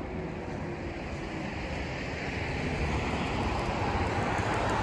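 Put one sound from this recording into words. A bus drives past, its engine growing louder.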